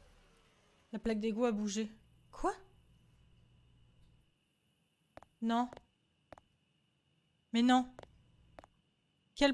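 A young woman speaks casually into a close microphone.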